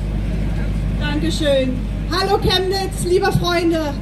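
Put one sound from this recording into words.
A young woman sings into a microphone through loudspeakers outdoors.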